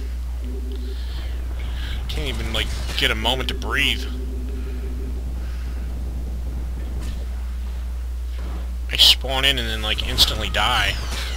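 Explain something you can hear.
Heavy footsteps run across a hard floor.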